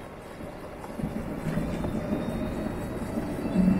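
An electric motor hums and rises as a scooter speeds up.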